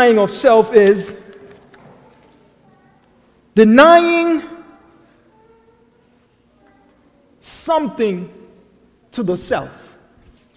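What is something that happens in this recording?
A man preaches through a microphone in short, forceful bursts with long pauses, echoing in a large hall.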